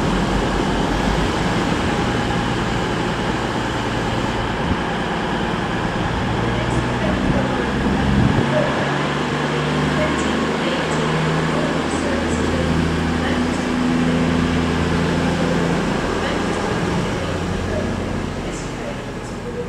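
A diesel train engine rumbles steadily as the train pulls away.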